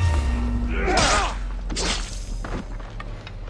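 A blade slashes and strikes with sharp impacts.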